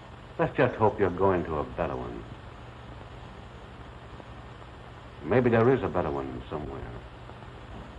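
A middle-aged man speaks calmly and firmly.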